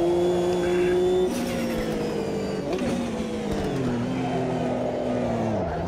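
A racing car engine roars steadily and drops in pitch in steps.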